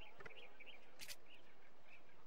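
A short electronic blip sounds as a text box closes.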